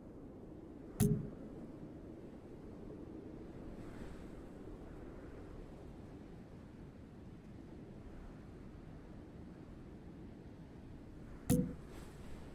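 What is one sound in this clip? A menu makes a short, sharp click when it switches.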